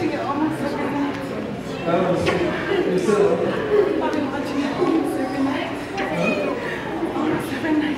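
A woman cries out and sobs.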